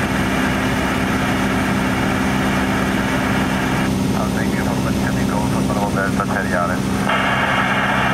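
A light aircraft engine drones steadily.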